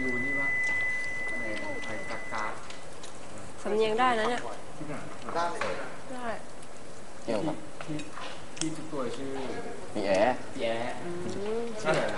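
A young woman talks quietly nearby.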